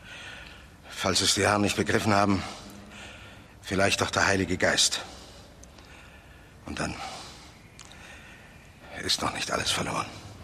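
An elderly man answers calmly in a low voice.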